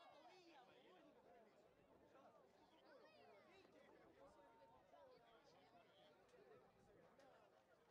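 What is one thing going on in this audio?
Spectators shout and cheer from the sidelines outdoors.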